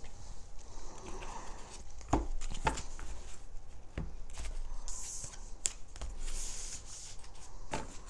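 Playing cards shuffle and tap on a table.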